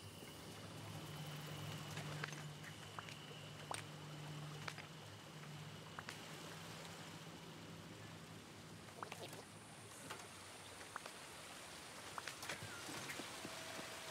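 A waterfall splashes and rushes nearby.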